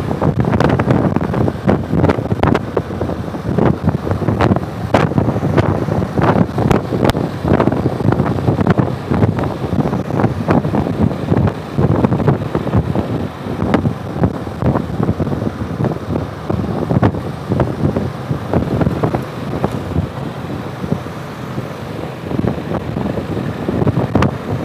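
Wind buffets and rumbles loudly past the rider.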